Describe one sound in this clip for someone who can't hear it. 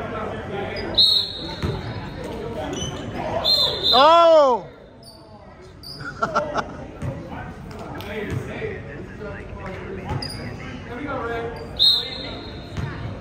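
A referee blows a sharp whistle in an echoing gym.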